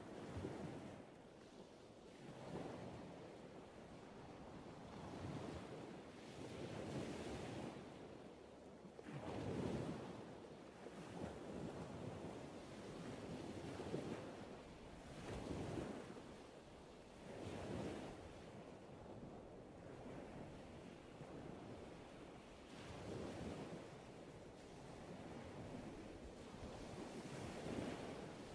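Waves break and wash onto the shore in slow, steady surges.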